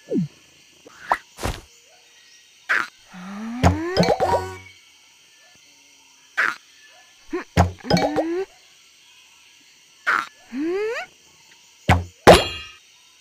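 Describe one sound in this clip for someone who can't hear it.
A slingshot twangs as bubbles are fired.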